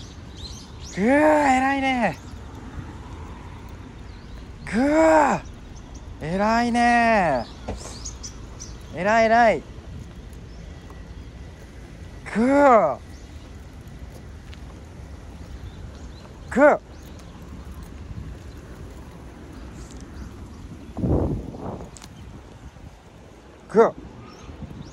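A small dog gives short, high whining yelps again and again.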